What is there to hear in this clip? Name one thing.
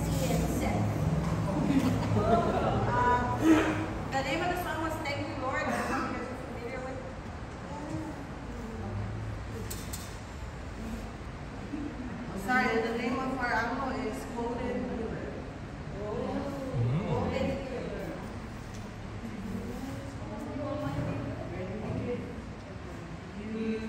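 A woman speaks calmly in a room with a slight echo.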